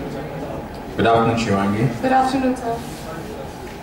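A young woman speaks through a microphone and loudspeaker.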